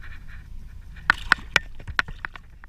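A fish splashes into water.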